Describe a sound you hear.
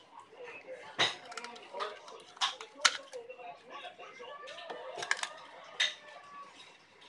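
Scissors snip through a spiny shell.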